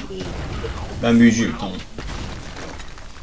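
A burst of fire roars briefly.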